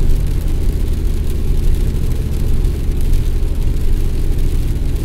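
Tyres hiss steadily on a wet road.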